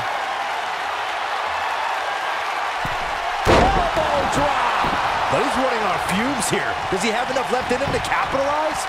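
A large crowd cheers and roars steadily in a big arena.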